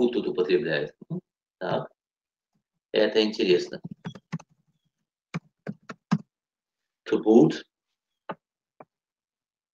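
A middle-aged man speaks calmly through an online call, in short bursts with pauses.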